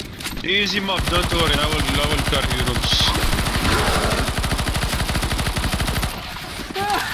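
A rifle fires in rapid bursts, close and loud.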